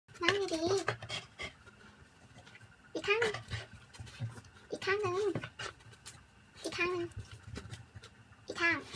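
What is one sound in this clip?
A dog howls in drawn-out, wavering cries, close by.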